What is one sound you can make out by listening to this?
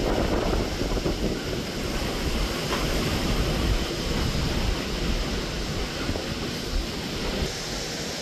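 Floodwater rushes and gurgles nearby.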